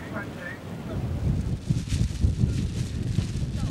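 Wind blows into the microphone outdoors.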